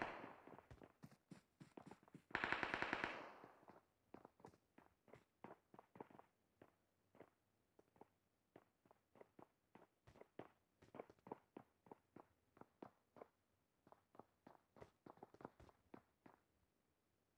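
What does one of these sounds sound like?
Footsteps tread quickly and steadily on hard ground.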